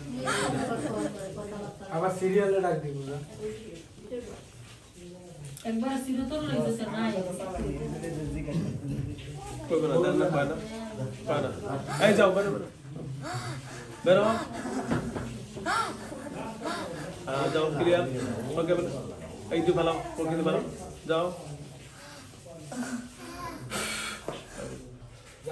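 A woman speaks quietly close by.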